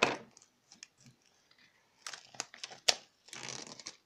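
Plastic wrap crinkles as fingers peel it off a box.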